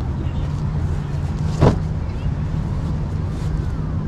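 Sandalled footsteps walk across grass.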